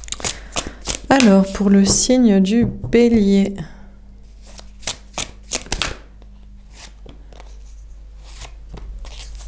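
Playing cards rustle and snap as hands shuffle and spread them.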